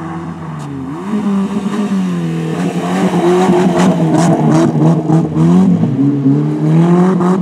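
Tyres crunch and spray mud and gravel as a car slides close by.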